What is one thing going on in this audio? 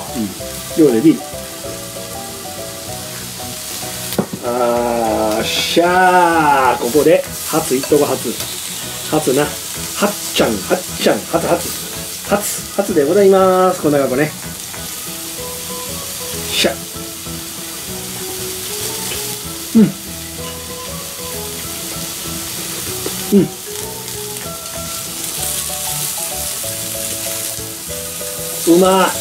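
Food sizzles on a hot grill.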